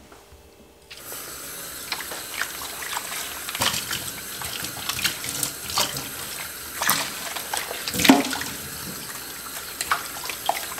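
Water from a tap splashes steadily into a metal sink.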